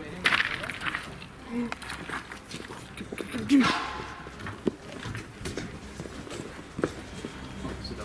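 Footsteps crunch on gravel and leaves outdoors.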